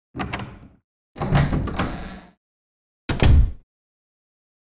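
A heavy wooden door creaks and bangs.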